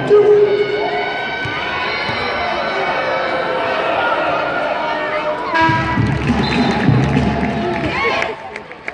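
A crowd chatters and cheers in a large echoing arena.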